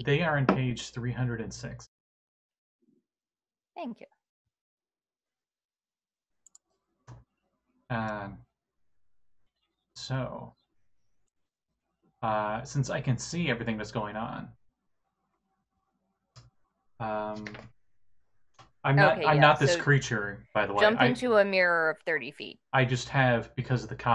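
Several men talk over an online call, in turns and with animation.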